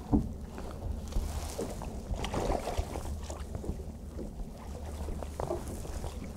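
Water splashes as a fish thrashes beside a boat.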